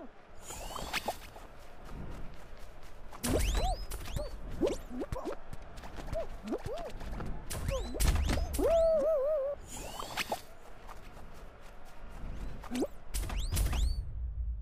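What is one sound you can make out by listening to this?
Quick bright thumps and pops sound along with them.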